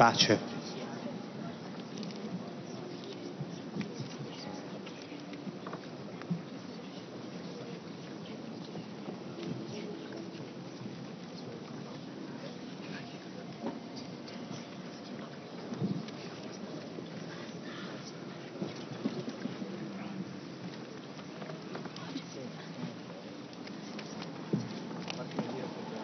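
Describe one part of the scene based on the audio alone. An elderly man murmurs softly in a large echoing hall.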